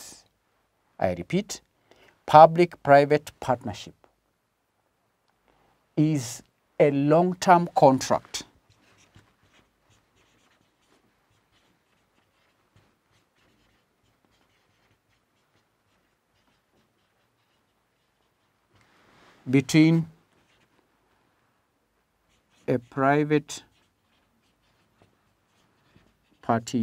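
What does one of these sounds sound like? An adult man speaks calmly, in short bursts with pauses.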